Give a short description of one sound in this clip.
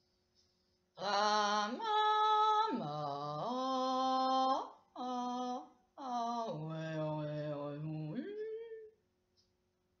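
A young woman sings sustained notes close by, in phrases that rise and fall.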